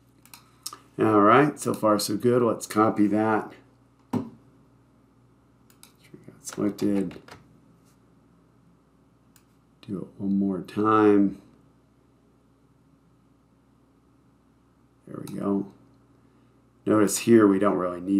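A man talks calmly and clearly into a close microphone, in short bursts with pauses.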